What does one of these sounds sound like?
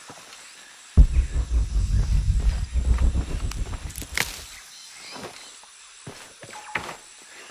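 Footsteps crunch through leafy undergrowth.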